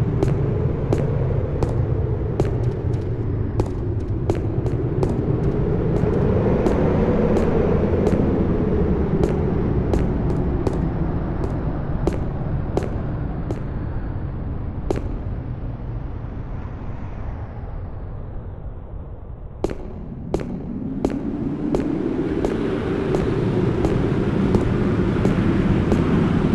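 Footsteps crunch on stone, echoing in a cave.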